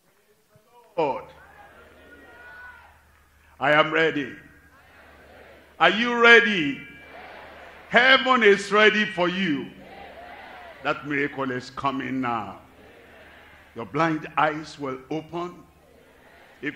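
An elderly man preaches with animation through a microphone, echoing over loudspeakers outdoors.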